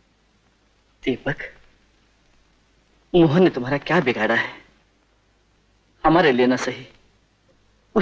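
A man speaks softly and coaxingly, close by.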